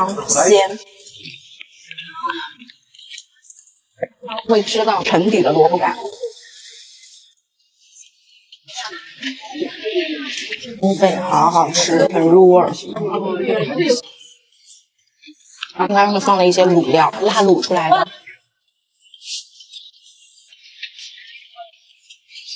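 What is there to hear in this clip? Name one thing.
A young woman slurps soup noisily.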